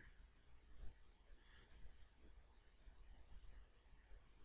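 A small plastic connector clicks softly as it is pressed into place.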